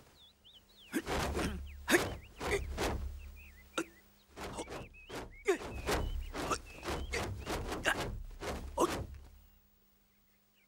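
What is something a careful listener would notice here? Robes swish and thud sharply as a fighter moves quickly.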